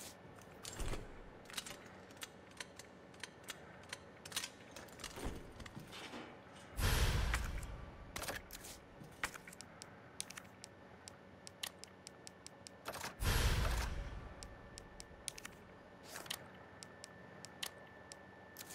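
Short menu clicks and beeps sound now and then.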